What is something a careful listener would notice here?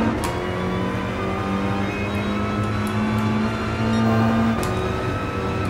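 A race car engine roars loudly, rising in pitch as it speeds up.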